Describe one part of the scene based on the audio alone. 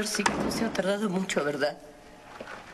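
A woman speaks quietly and closely.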